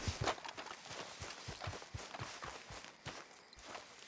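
Horse hooves clop quickly on the ground.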